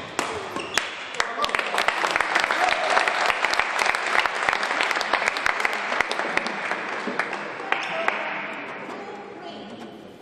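An audience applauds in a large hall, then fades out.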